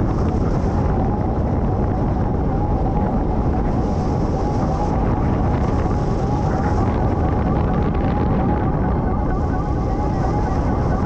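A flight instrument beeps in quick, high-pitched chirps.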